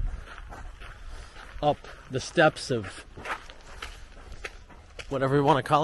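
Footsteps climb stone steps.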